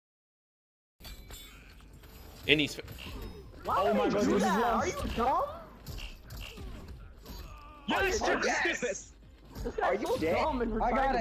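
Punches and blows land with heavy thuds in a fighting game.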